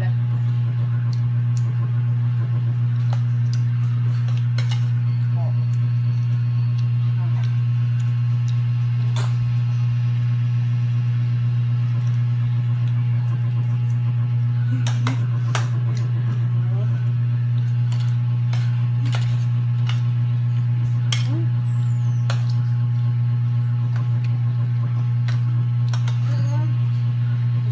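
Spoons and forks clink against plates.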